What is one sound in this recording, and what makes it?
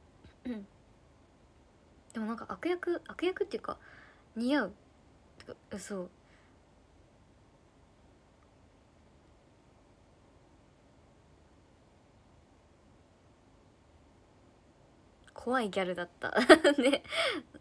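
A young woman speaks softly and casually close to a microphone, with pauses.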